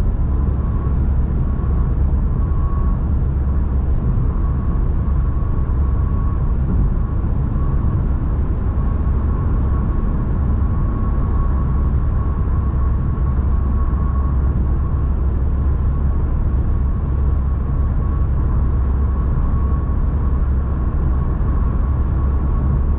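A car's engine hums steadily while driving at speed.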